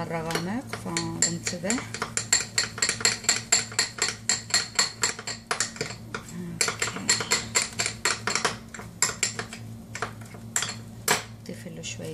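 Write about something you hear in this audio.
A spoon clinks rapidly against a glass bowl while stirring.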